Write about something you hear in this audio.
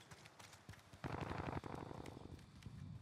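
Quick footsteps thud on a hard floor.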